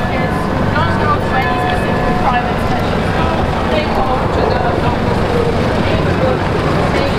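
A crowd of people chatter outdoors.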